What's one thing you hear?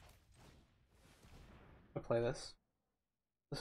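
A magical whoosh sounds as a spell is cast.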